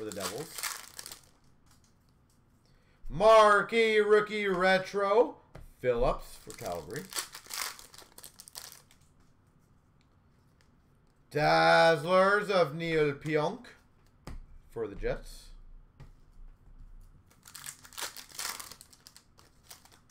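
Plastic card wrappers crinkle and rustle in hands.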